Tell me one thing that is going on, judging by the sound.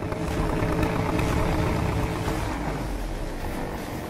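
Tyres screech and spin on asphalt.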